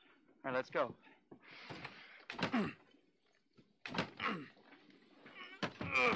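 A door handle rattles.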